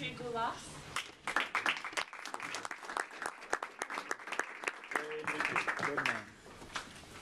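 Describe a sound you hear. A small group applauds in a room.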